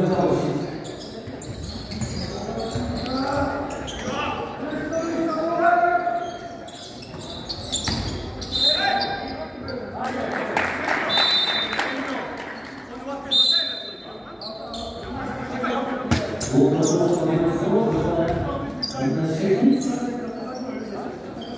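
Men shout and call out across an echoing hall.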